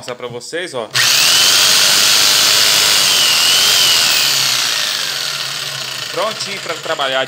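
A jigsaw motor whirs loudly and steadily.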